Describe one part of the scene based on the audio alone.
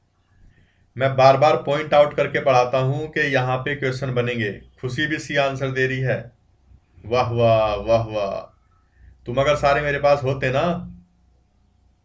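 A man speaks clearly into a microphone, as if explaining, in short bursts with pauses.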